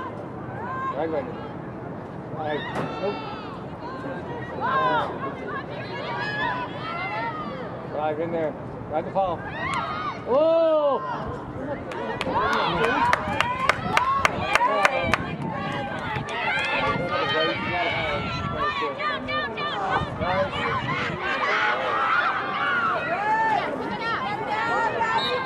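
Young women shout and call out across an open field.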